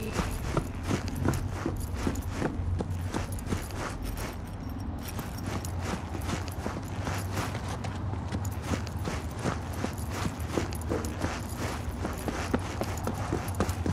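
Footsteps run quickly on hard pavement.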